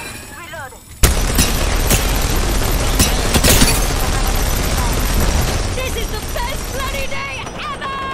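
A heavy gun fires rapidly in loud bursts.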